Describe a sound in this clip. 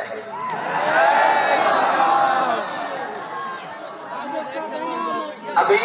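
A large crowd of people sings and chants loudly together nearby.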